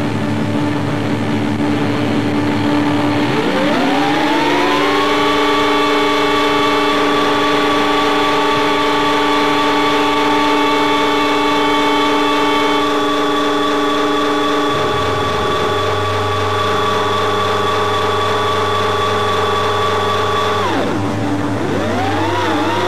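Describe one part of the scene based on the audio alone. Electric guitars sound with long, bending, sustained notes.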